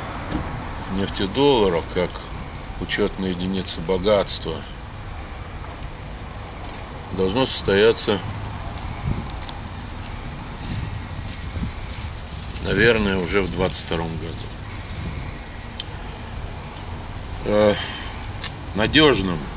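An elderly man speaks calmly in short phrases, close by.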